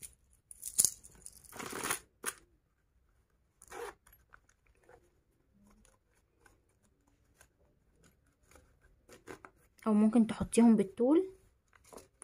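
Hands rub and rustle against a soft knitted pouch.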